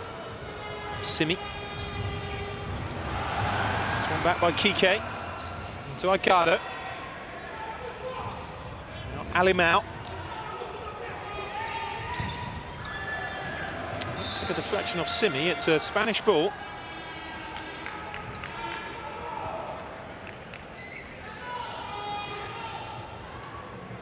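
A ball thuds as players kick it.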